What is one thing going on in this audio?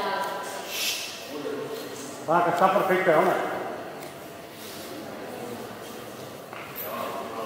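A crowd of men and women call out and murmur in a large echoing hall.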